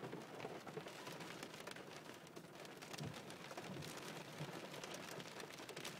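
A windscreen wiper swishes across the glass.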